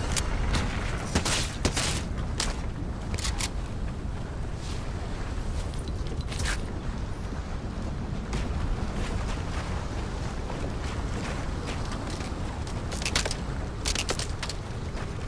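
Wooden walls snap into place with quick clattering knocks.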